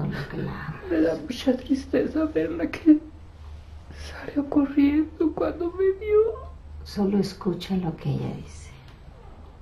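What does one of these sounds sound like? A woman speaks close by, with pauses.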